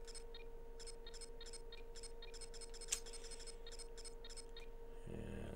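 Short electronic menu blips tick quickly one after another.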